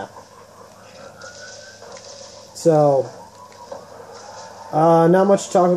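A video game's sound effects play through a television speaker.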